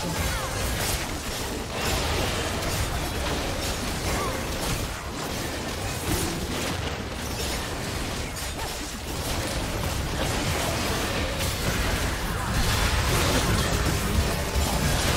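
Spells crackle and blast in a video game battle.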